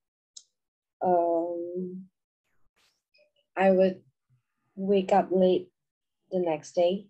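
A woman speaks calmly and clearly into a microphone, with short pauses.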